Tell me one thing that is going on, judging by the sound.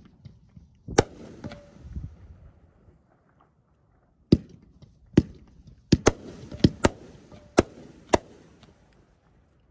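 Fireworks crackle and fizz after bursting.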